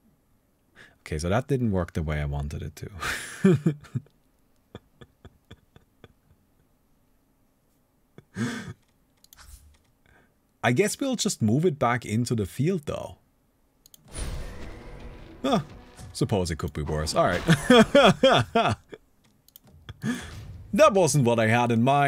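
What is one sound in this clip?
A young man talks with animation into a close microphone, pausing now and then.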